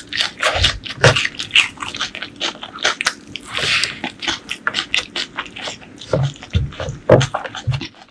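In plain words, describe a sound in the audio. Crunchy noodles rustle and crackle as fingers grab them.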